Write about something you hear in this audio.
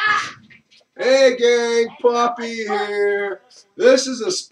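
A man sings loudly nearby.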